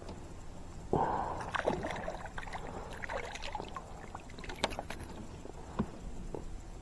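Water drips and splashes as a fish is lifted from the water.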